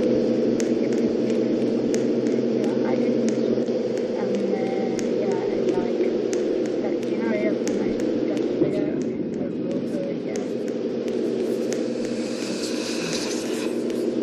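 Footsteps tread steadily on the ground.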